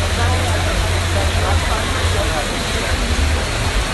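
Young men shout and talk excitedly nearby.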